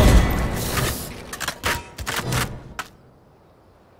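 Gunshots fire in rapid bursts and then stop.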